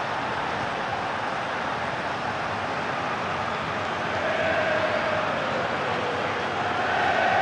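A stadium crowd roars and cheers steadily, swelling louder.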